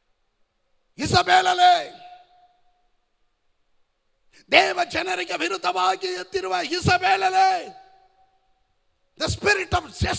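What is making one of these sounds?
A man speaks with animation through a microphone, with pauses between phrases.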